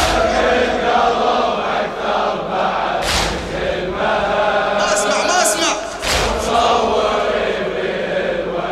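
A large crowd chants along in unison.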